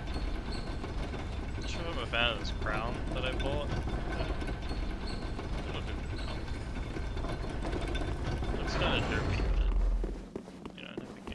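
Heavy armored footsteps thud on stone.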